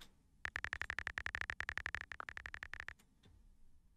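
Soft keyboard taps click rapidly and evenly.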